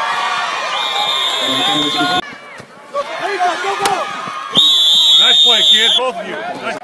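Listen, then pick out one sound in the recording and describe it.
A referee's whistle blows in sharp blasts.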